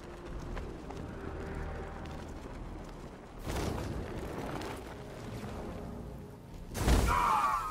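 Wind rushes past steadily during a long glide.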